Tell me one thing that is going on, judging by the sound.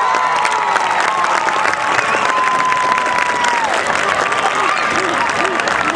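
Young women shout cheers together.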